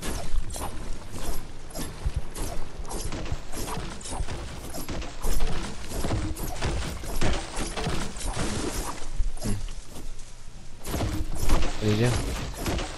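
A pickaxe strikes hard surfaces over and over in a quick, steady rhythm.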